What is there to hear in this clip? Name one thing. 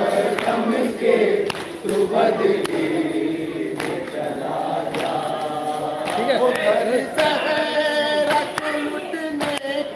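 A crowd of men chants together loudly outdoors.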